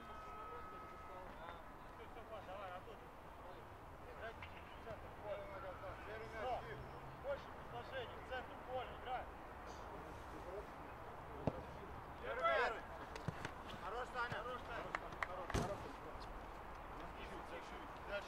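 Men shout and call out to each other across an open outdoor pitch.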